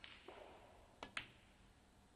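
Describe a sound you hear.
A snooker cue strikes the cue ball with a sharp click.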